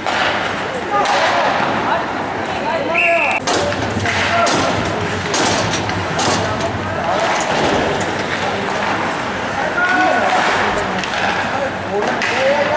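Young men call out to each other in an echoing rink.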